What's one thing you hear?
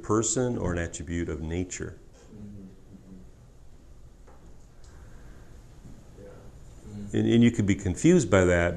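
A middle-aged man speaks calmly and thoughtfully into a nearby microphone, pausing between phrases.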